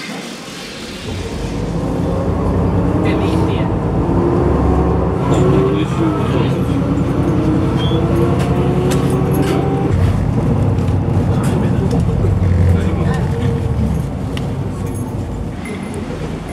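A bus engine hums steadily while the bus drives.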